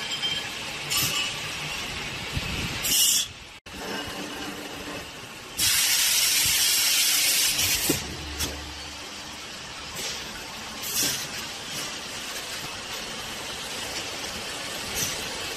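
A packaging machine whirs and hums steadily.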